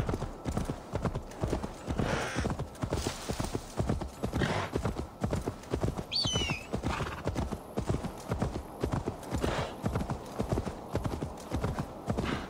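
Horse hooves thud rapidly on soft ground.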